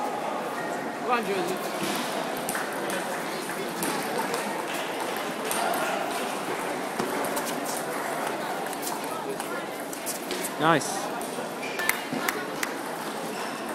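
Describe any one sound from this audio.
A table tennis ball clicks sharply off bats and the table.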